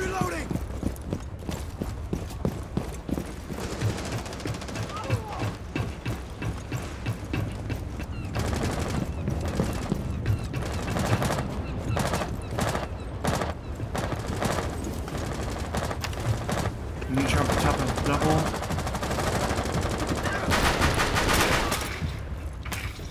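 Footsteps run quickly over hard ground and wooden boards.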